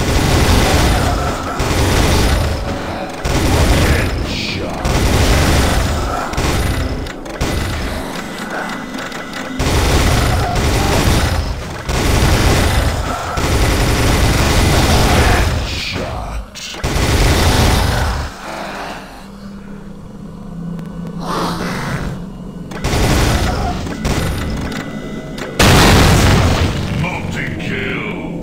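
A heavy machine gun fires in long, rapid bursts.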